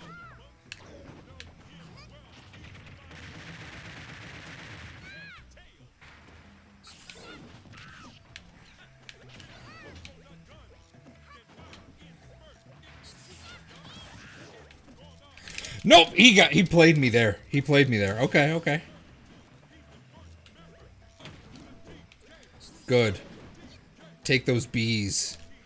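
Video game fighting sounds of hits and whooshes play throughout.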